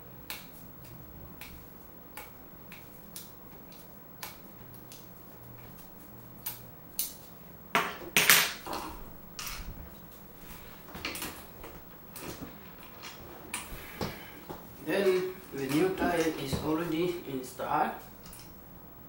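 Metal parts click and clank as a wheel is fitted onto a scooter.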